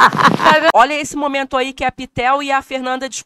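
Two young women talk quietly up close.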